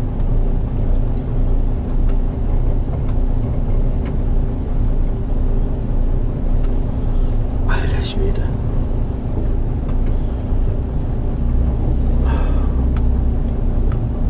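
A truck engine rumbles steadily from inside the cab.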